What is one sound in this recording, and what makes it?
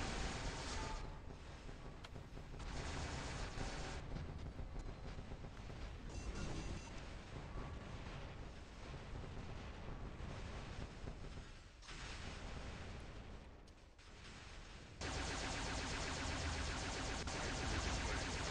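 Robot weapons fire in rapid bursts.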